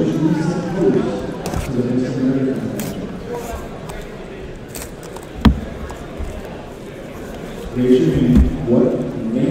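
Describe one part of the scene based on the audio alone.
Hands open a cardboard box, which scrapes and thumps on a table.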